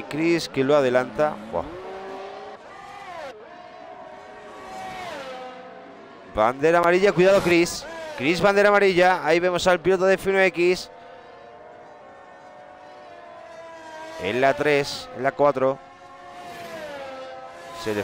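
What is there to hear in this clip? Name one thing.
A racing car engine whines at high revs and shifts gears as it speeds past.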